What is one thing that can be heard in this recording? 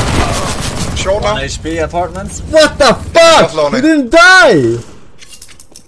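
A man shouts excitedly into a microphone close by.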